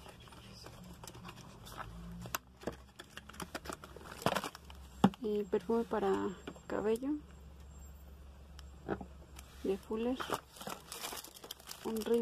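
Plastic packages rustle and click as hands rummage through them.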